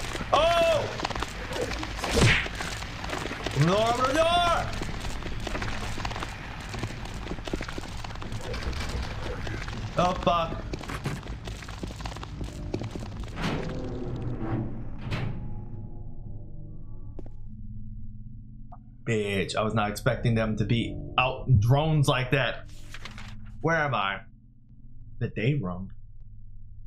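A young man talks and exclaims loudly into a close microphone.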